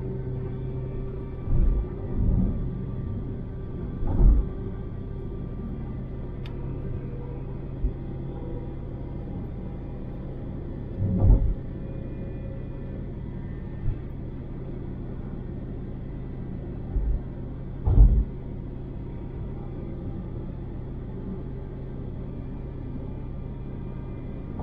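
A car engine hums steadily inside a car driving on a highway.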